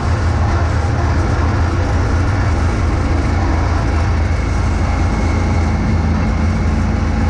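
Snow is thrown and hisses out of a snowblower chute.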